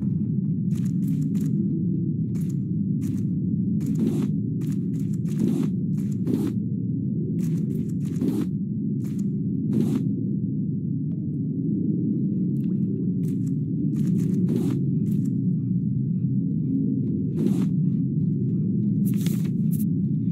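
A low, steady underwater rumble fills the background.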